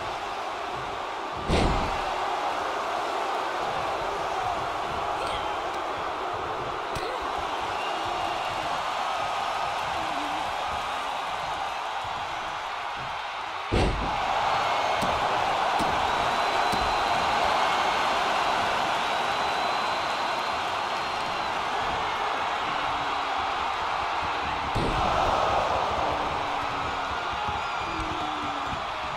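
A large crowd roars steadily in a big arena.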